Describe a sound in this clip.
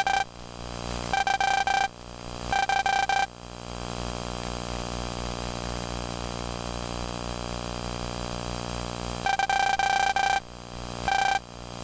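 Rapid electronic blips chirp in short bursts.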